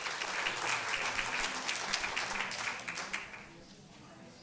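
An audience applauds in a large hall, then the clapping dies away.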